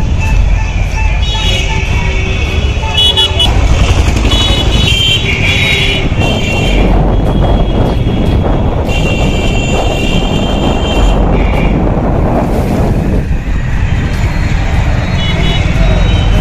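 Vehicle engines rumble along a busy street.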